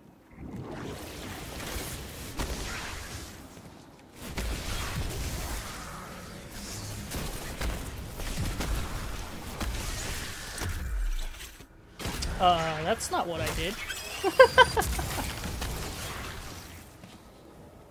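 Game gunfire and energy blasts crackle and boom.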